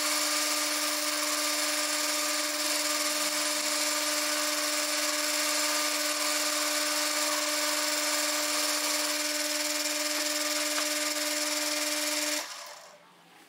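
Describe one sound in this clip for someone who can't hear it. A lathe motor hums steadily and stops.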